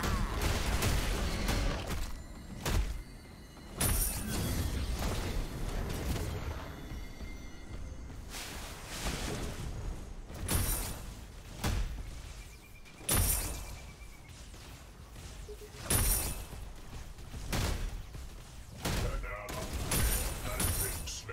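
Sharp energy blasts fire in short bursts.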